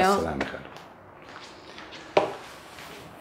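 Footsteps walk away across the floor.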